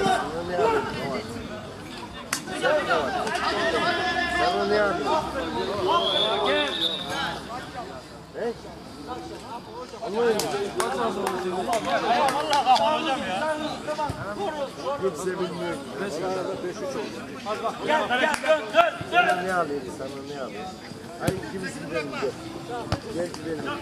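Men shout to each other during an outdoor football match.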